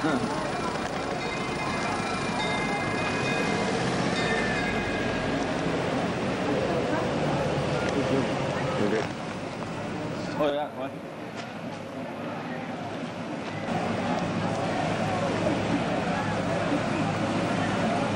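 A crowd chatters and cheers outdoors.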